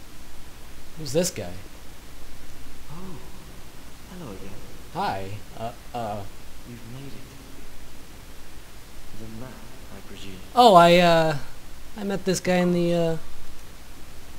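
A man speaks cheerfully in a game character's voice.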